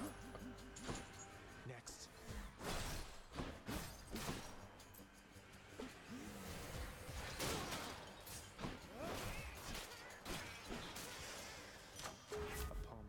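Game attack sounds whoosh and crackle.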